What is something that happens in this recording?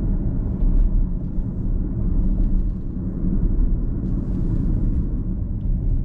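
Tyres rumble low and steady on a road.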